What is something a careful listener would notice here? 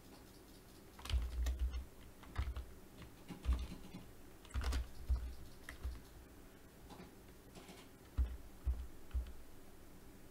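A man types on a keyboard in quick bursts.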